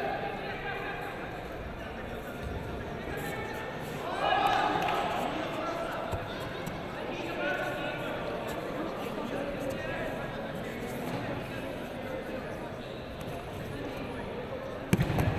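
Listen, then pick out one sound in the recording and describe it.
Voices of spectators murmur and call out throughout a large echoing hall.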